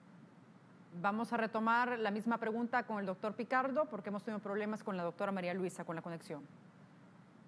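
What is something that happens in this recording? A woman speaks clearly and calmly into a studio microphone.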